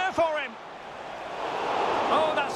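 A stadium crowd cheers loudly, swelling toward the end.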